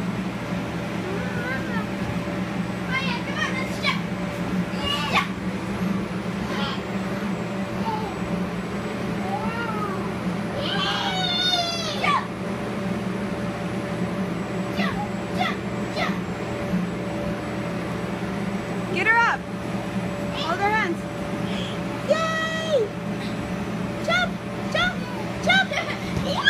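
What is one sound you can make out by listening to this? Children's bodies thump softly on a bouncy floor.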